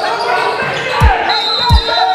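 A basketball bounces with deep thumps in an echoing gym.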